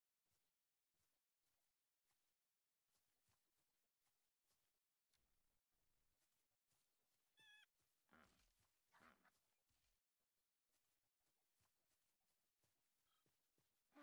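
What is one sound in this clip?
A wolf's paws patter on dry ground.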